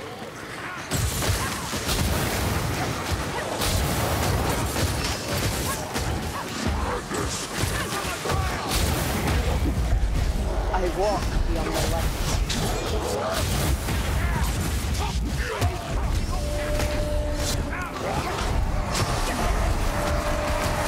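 Blades clash and strike in a fierce melee fight.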